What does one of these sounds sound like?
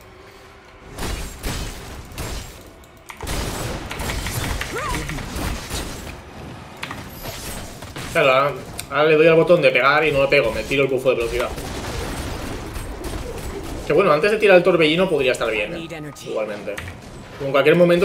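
Video game combat effects clash and whoosh.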